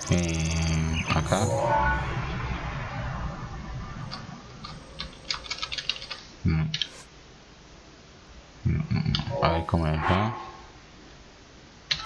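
Soft electronic chimes and clicks sound as a menu opens and pages turn.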